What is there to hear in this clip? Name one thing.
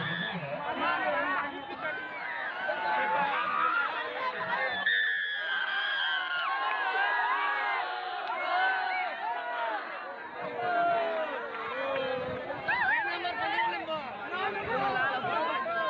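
A large outdoor crowd of men shouts and cheers loudly.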